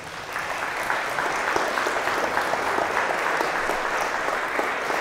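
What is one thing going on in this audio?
A man speaks into a headset microphone in a large echoing hall.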